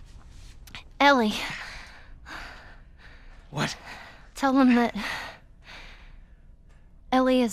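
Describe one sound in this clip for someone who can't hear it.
A young girl speaks softly and hesitantly.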